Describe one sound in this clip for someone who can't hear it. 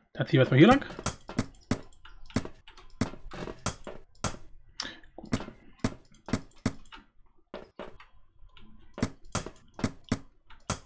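Blocks are placed with short, quick clicks.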